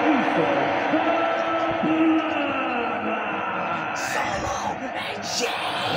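A large crowd cheers and roars through a television speaker.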